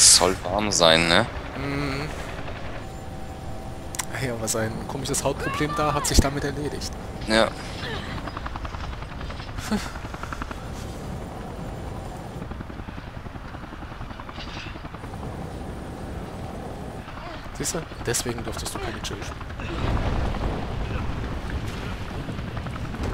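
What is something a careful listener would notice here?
A helicopter engine drones and its rotor thuds steadily.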